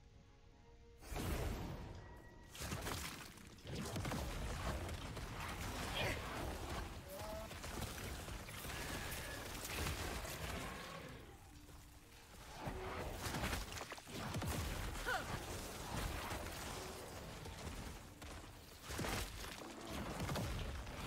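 Video game combat effects crash, boom and whoosh rapidly.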